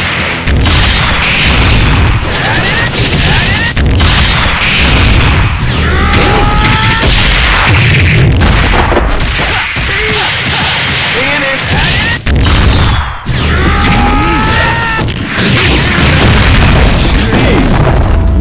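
Punches and kicks land with sharp, heavy thuds.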